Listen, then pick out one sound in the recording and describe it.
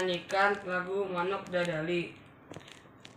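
A young boy speaks close by, calmly.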